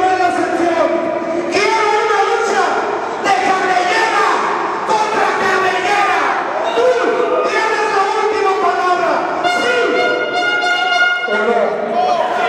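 A man shouts forcefully into a microphone, heard over loudspeakers in a large echoing hall.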